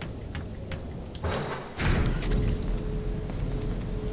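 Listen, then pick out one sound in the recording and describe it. A metal door opens.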